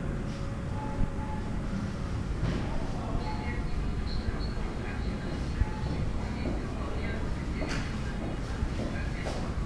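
A plastic cup crinkles and taps as a hand turns it.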